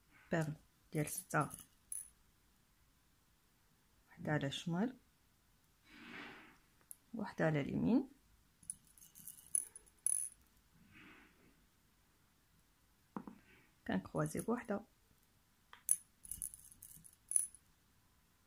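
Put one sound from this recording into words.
Small beads clink against a glass bowl.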